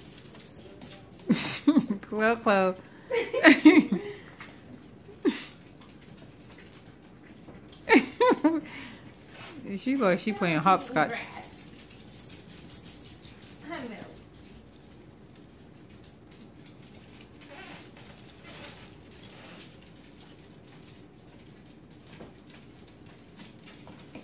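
Dog claws patter and click on a hard floor.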